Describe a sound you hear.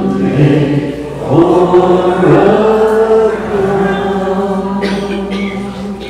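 Men sing together through loudspeakers.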